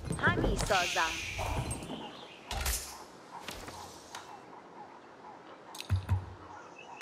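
Short game sound effects chirp, click and thump.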